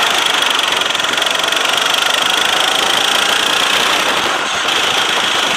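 A go-kart engine buzzes loudly and steadily close by.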